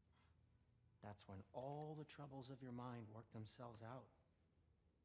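A middle-aged man speaks calmly and close by.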